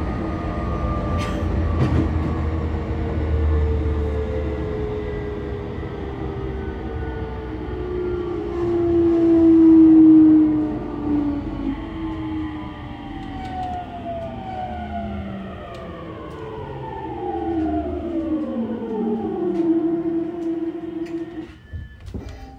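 A train's electric motor whines and falls in pitch as the train slows to a stop.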